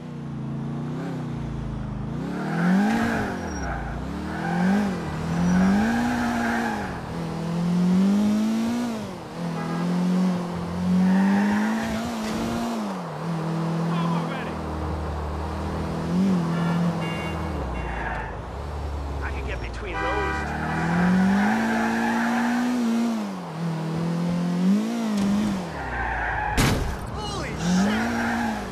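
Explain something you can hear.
A car engine revs up and down, rising and falling again and again.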